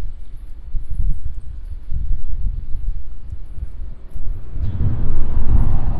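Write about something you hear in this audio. Small waves lap against a concrete wall.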